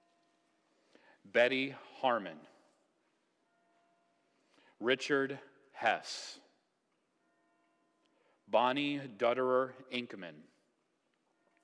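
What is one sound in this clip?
A man reads aloud in a measured voice.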